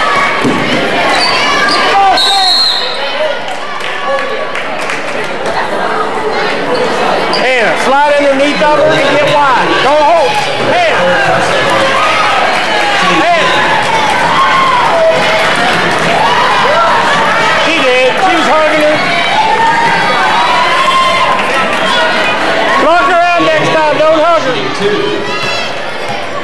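A crowd of spectators chatters and shouts in a large echoing hall.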